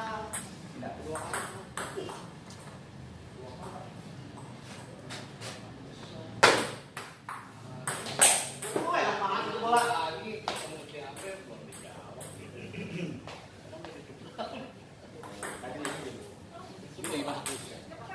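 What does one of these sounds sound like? A table tennis ball clicks quickly back and forth off paddles and the table.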